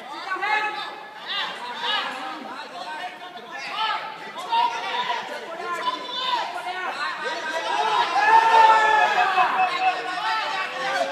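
Several men shout loudly and urgently in a large echoing hall.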